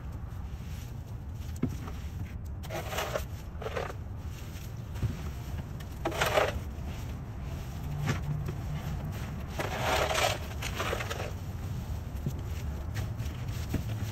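Dry leaves rustle and crackle as they are dumped into a plastic bin.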